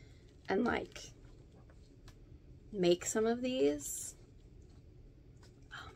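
Paper rustles as pages are leafed through.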